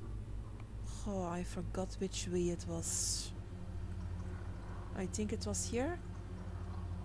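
A young adult speaks briefly and casually into a close microphone.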